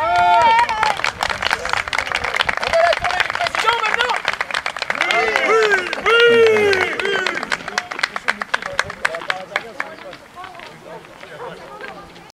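Many people clap their hands rapidly.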